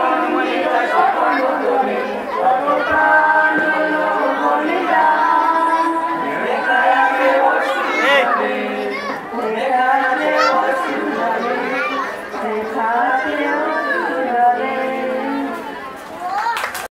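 A group of young men and women sing together in unison through a microphone.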